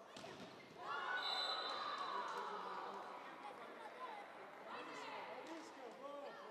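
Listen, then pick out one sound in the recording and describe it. A crowd of spectators cheers and shouts after a rally.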